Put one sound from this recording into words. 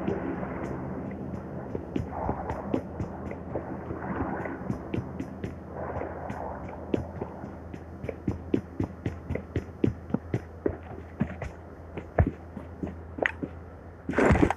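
Footsteps thud quickly across floors and ground.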